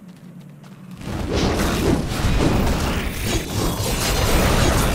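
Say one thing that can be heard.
Magic spells crackle and whoosh loudly during a fight.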